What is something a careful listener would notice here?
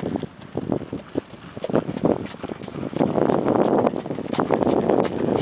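A horse's hooves thud on gravel in a quick, rhythmic beat, growing closer.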